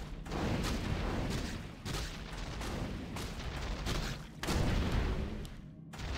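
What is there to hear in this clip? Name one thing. Magical spell effects shimmer and crackle.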